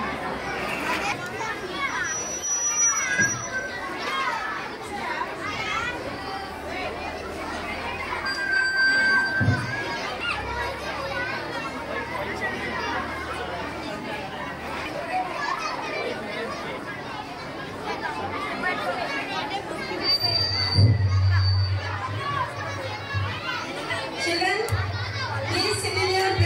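Many children chatter and talk at once nearby.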